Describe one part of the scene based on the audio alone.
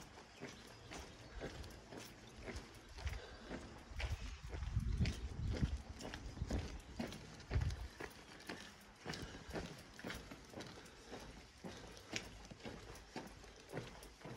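Footsteps tap steadily on a paved lane.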